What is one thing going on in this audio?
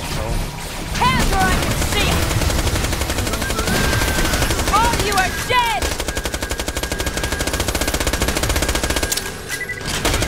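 A rapid-fire gun shoots in a fast, steady burst.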